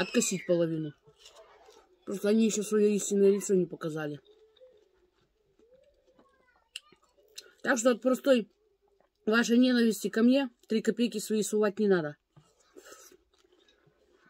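A woman bites and chews juicy watermelon.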